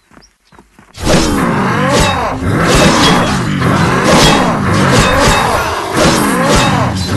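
Loud clashes and blasts of a fierce fight ring out.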